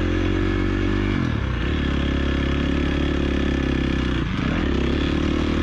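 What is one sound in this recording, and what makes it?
A dirt bike engine roars loudly, shifting pitch as the throttle opens and closes.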